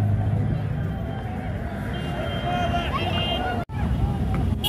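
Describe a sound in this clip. A car engine rumbles as a car drives past close by.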